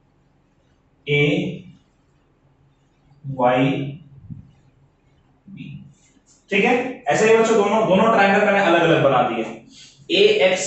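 A man speaks calmly and clearly, close by, in short phrases.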